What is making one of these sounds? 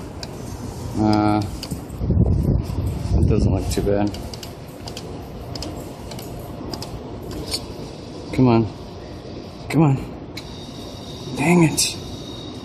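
An arcade claw machine plays short electronic tunes.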